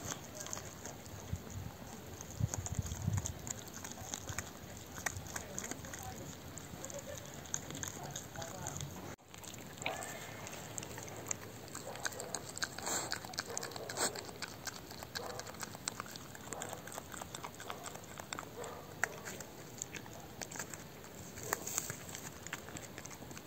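A dog gnaws and crunches on a bone up close.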